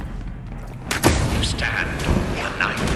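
A blast bursts with crackling sparks.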